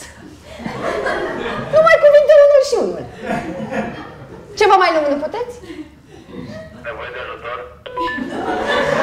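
A woman answers in a raised voice.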